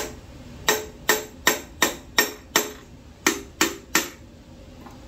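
Metal taps sharply on metal in a quick series.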